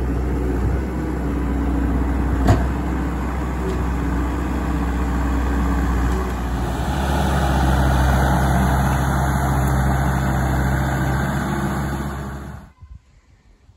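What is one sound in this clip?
Tracks clank and scrape over soil.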